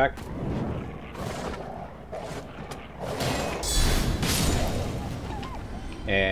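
A sword swings and strikes with heavy thuds.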